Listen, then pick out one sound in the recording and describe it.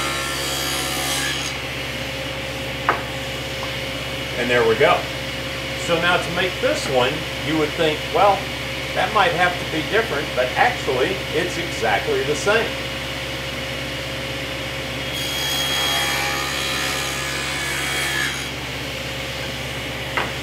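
A table saw motor hums steadily.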